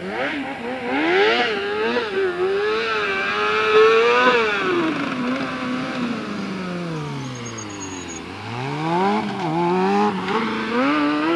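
A motorcycle engine revs up and down as the bike is ridden in tight circles.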